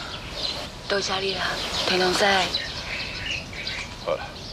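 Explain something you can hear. A young woman speaks briefly close by.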